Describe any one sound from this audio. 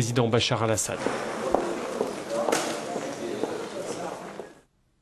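Several people talk in the background of an echoing hall.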